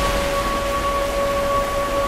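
Water splashes and trickles nearby.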